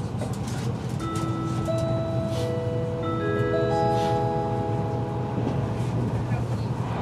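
A level crossing bell rings and drops in pitch as the train passes.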